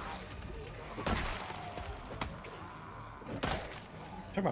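Heavy blows thud and squelch against bodies.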